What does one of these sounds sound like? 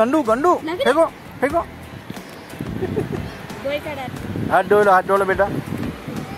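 A small child babbles and squeals close by.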